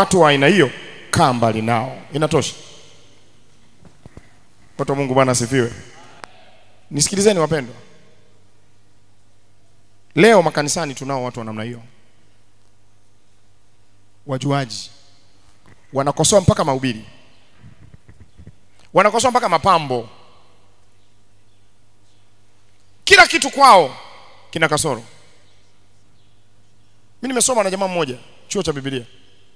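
A man preaches with animation into a microphone, in short bursts with pauses between.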